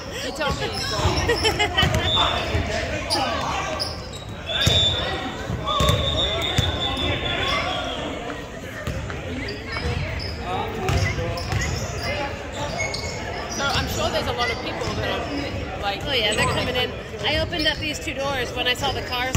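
Spectators and players call out and chatter across the echoing hall.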